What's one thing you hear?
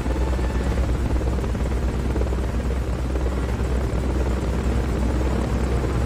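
A helicopter's rotor thuds steadily overhead.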